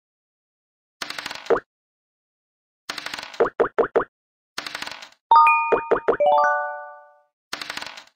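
Dice rattle as they roll in a game.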